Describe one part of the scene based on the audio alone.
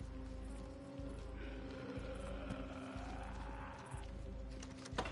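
A door creaks slowly open on its hinges.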